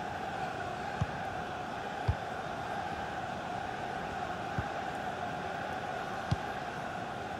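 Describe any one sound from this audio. A football is kicked with dull thumps now and then.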